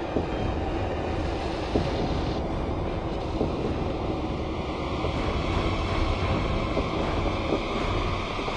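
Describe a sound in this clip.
Slow footsteps echo on a hard floor.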